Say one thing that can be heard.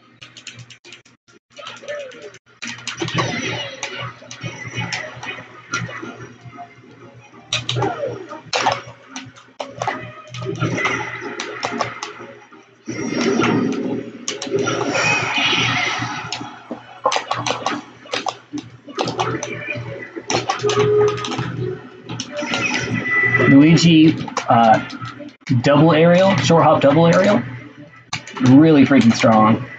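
Video game punches and blasts thump and crack in quick bursts.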